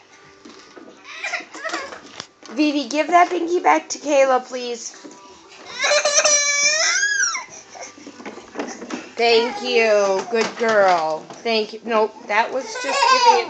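Young toddlers babble and squeal close by.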